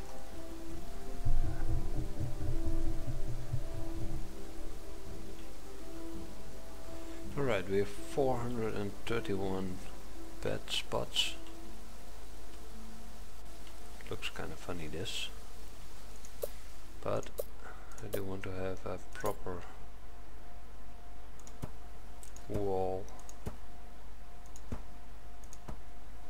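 Light rain patters softly.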